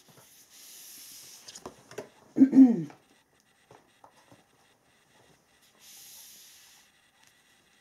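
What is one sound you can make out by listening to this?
Playing cards slide softly across a table.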